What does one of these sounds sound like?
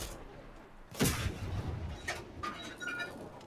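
A machine gun fires in bursts.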